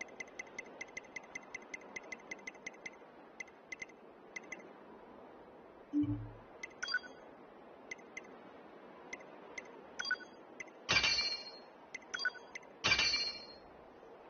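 Short electronic menu blips tick in quick succession.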